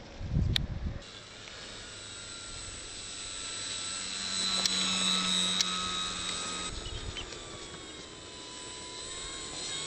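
A model airplane engine buzzes overhead, its pitch rising and falling as it flies past.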